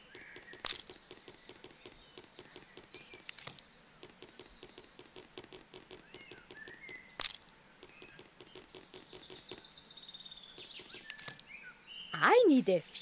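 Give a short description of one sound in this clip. Small footsteps patter quickly on grass.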